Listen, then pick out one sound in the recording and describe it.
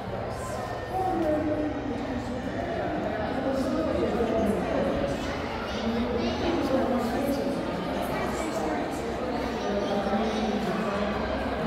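Visitors chatter in a busy indoor hall.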